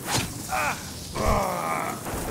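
A weapon strikes in a fight with a sharp thud.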